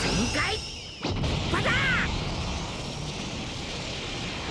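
A crackling energy blast roars and rumbles.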